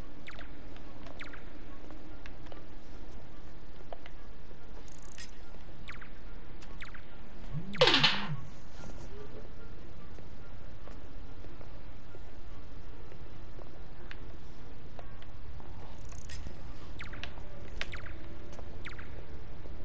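Footsteps tap softly on a hard stone floor in a large echoing hall.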